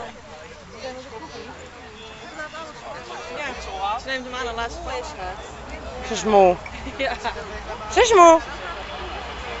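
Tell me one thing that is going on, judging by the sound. A dog howls and whines nearby in high, wavering cries.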